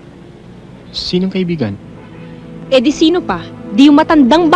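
A young woman speaks sharply nearby.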